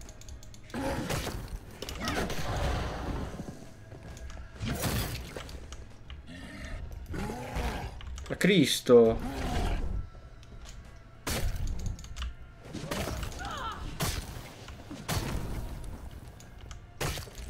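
Heavy blows thud against a zombie's body.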